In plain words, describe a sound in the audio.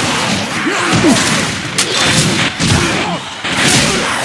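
A hulking monster snarls and roars up close.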